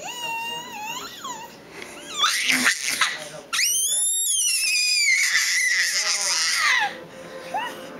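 A baby squeals and babbles loudly close by.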